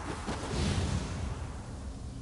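A small blast bursts with a crackle.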